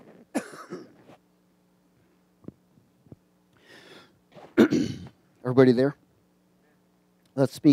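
A man speaks with feeling into a headset microphone, in short bursts with pauses.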